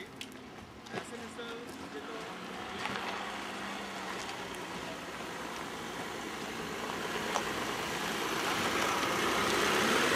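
A car engine hums, growing louder as the car drives up close.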